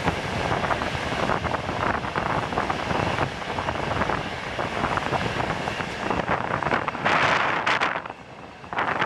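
A passing freight train roars close by.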